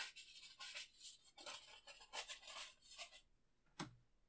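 A brush scrubs briskly against a canvas.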